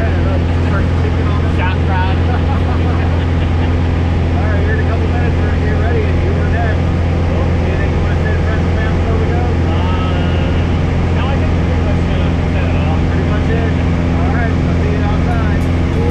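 Men talk and laugh over the engine noise.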